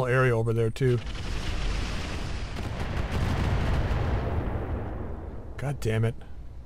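A large explosion booms and rumbles away slowly.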